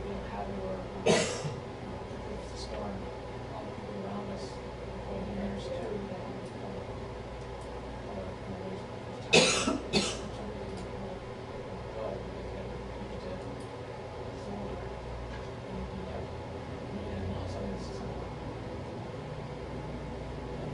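A man speaks calmly, heard from a distance.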